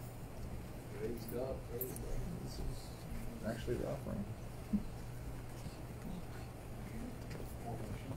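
An older woman speaks calmly, in a room with a slight echo.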